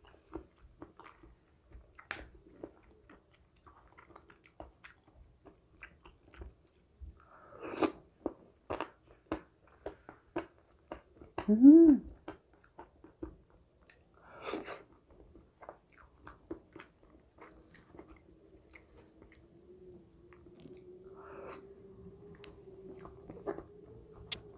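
A plastic spoon clicks and scrapes against a bowl.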